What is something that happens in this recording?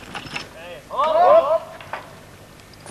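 A group of men shouts together.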